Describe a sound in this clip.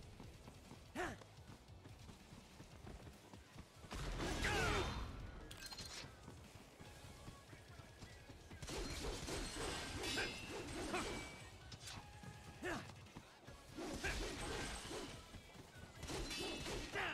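Metal blades clash and slash with sharp ringing hits.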